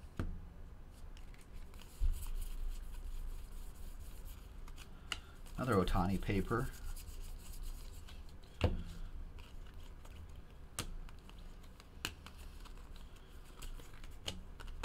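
Trading cards shuffle and flick between hands.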